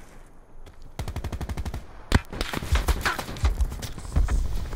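Rapid gunfire rattles in bursts.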